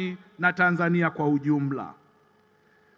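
A man speaks steadily into a microphone over a loudspeaker.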